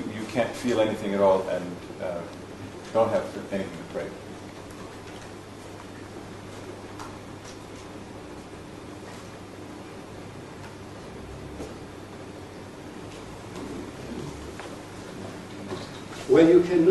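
An elderly man speaks calmly in a room with a slight echo.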